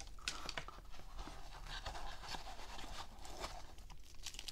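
Foam padding rubs and squeaks softly.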